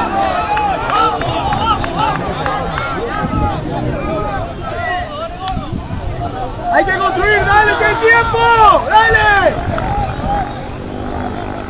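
Players call out to each other from across an open field.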